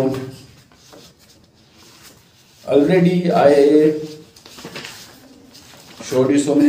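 A man speaks calmly and closely, in short phrases with pauses.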